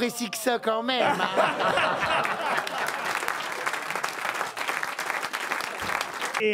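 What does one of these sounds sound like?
An audience laughs and applauds in a large room.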